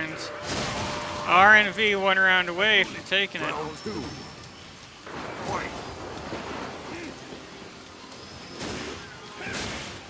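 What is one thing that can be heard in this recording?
Punches and kicks land with sharp thuds in a video game fight.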